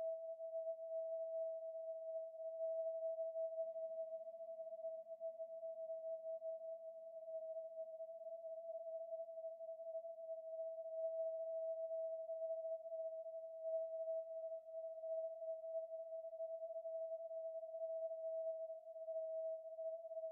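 A synthesizer plays a steady, unchanging electronic tone.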